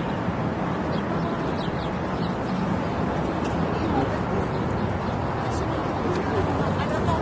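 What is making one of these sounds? Traffic rumbles steadily on a nearby road.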